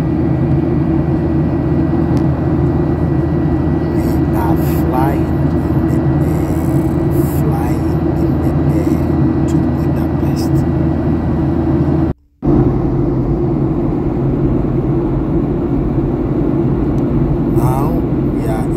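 A jet engine drones steadily inside an airliner cabin.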